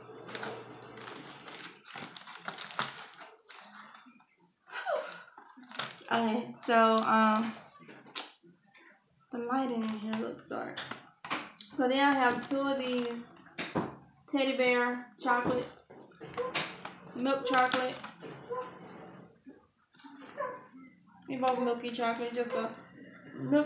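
Cardboard packages rustle and tap as they are handled.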